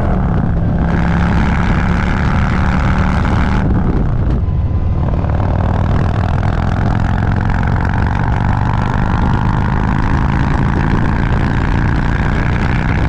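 A motorcycle engine rumbles steadily at speed.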